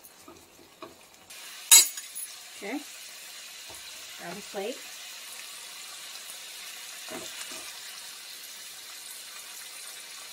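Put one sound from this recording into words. A spatula scrapes and clatters against a frying pan.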